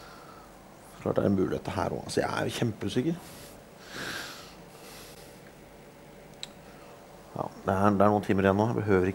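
A man speaks nearby in a low, muttering voice.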